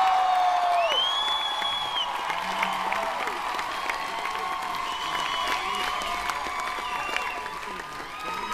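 A drummer hits drums and cymbals loudly.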